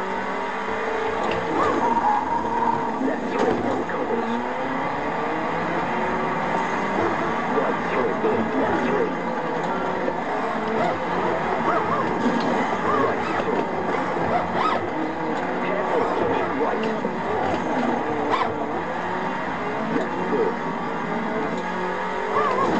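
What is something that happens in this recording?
A rally car engine roars and revs steadily.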